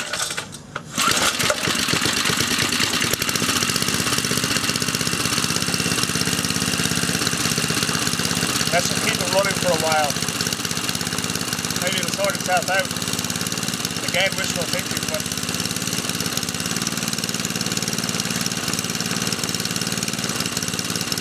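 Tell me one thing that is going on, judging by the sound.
A small petrol engine starts and runs with a steady, loud rattling drone.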